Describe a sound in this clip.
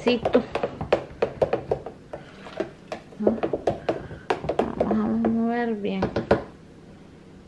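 A spoon stirs and clinks against a plastic pitcher.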